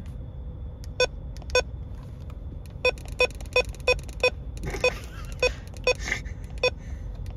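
A handheld radio beeps sharply as its buttons are pressed.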